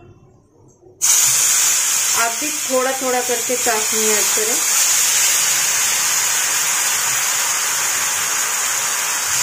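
Water pours into a hot pan and sizzles loudly and steadily.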